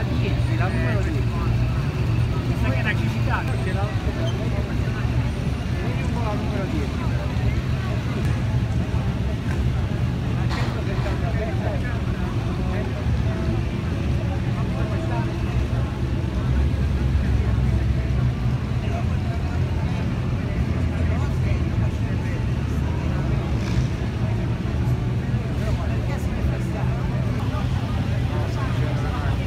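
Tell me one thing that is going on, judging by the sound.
Vintage car engines rumble and idle as the cars roll slowly past.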